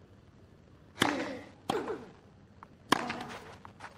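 A tennis ball is struck hard with a racket.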